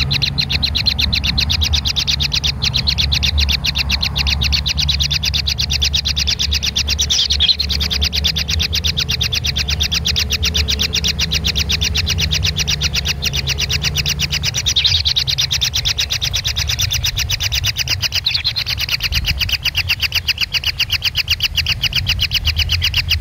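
Nestling birds cheep in rapid, insistent begging calls.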